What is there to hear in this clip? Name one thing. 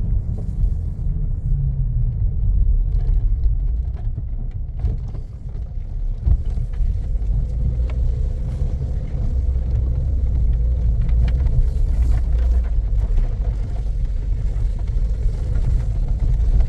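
Tyres rumble on a paved road, heard from inside a car.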